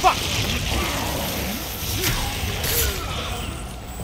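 A monster snarls and grunts while wrestling.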